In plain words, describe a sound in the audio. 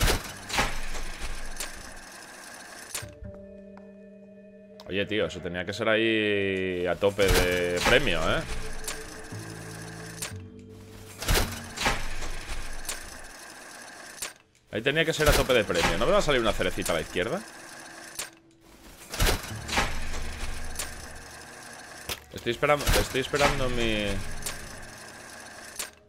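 A slot machine lever clunks as it is pulled.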